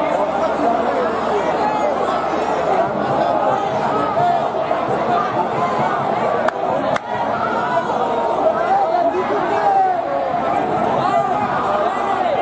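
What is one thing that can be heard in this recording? A large crowd shouts and chants loudly outdoors.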